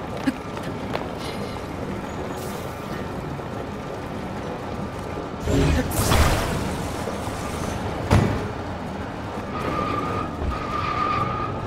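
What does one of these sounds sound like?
A heavy stone block grinds and rumbles along a track.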